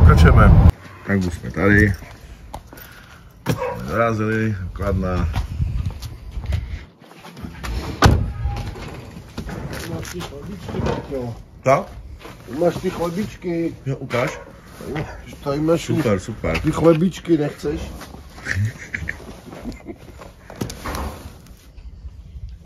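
A middle-aged man talks with animation nearby.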